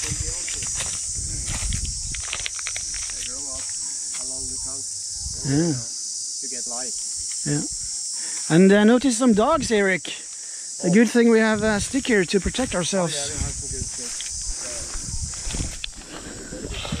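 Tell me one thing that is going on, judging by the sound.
Insects buzz steadily outdoors.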